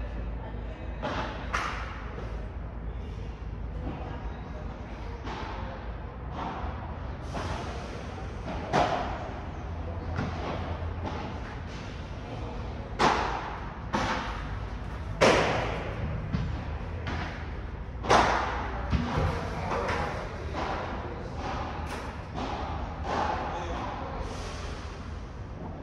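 A ball bounces on the court.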